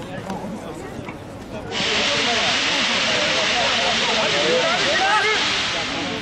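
Men shout and call to each other across an open outdoor pitch.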